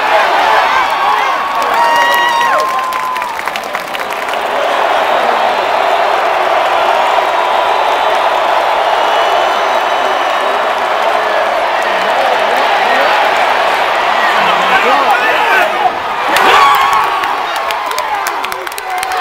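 A large stadium crowd roars and cheers all around.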